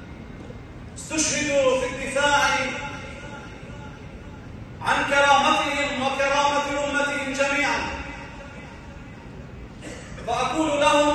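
A man cries out and sobs loudly nearby.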